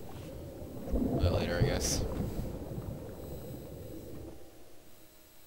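Bubbles gurgle loudly and fade.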